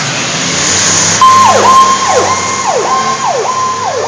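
A fire truck drives off outdoors.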